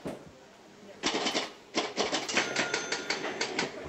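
A pinball machine clatters and clicks as it is played.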